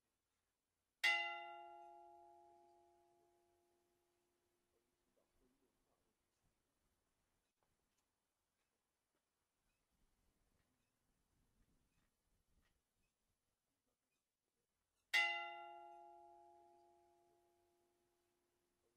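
A church bell strikes twice, each stroke ringing out and slowly fading.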